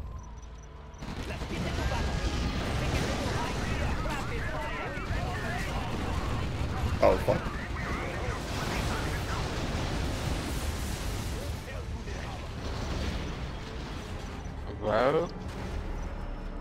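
Huge explosions boom and rumble.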